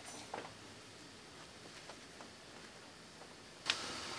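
A bag thumps down onto a bed.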